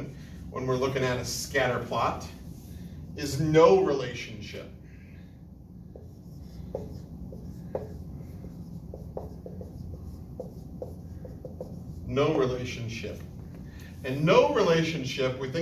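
A man speaks calmly nearby, explaining in pauses.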